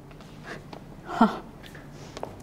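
A young woman laughs softly.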